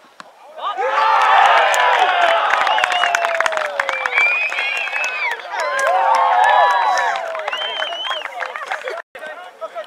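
Men shout and cheer loudly outdoors.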